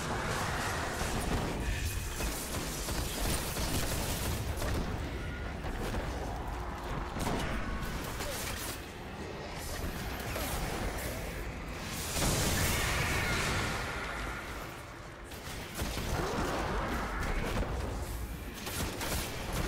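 Energy blasts hiss and explode.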